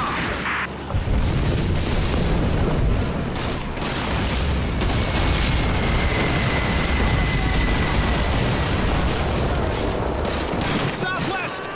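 Artillery shells explode in deep, heavy booms that rumble on.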